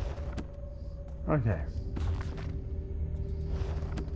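A book's pages flip open with a papery rustle.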